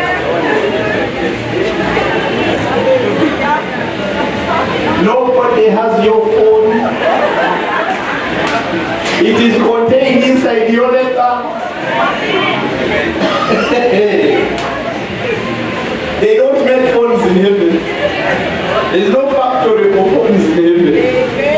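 A man speaks with animation into a microphone, heard through loudspeakers in a large room.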